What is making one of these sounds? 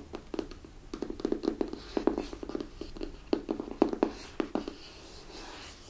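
Fingernails tap and scratch on a cardboard box close up.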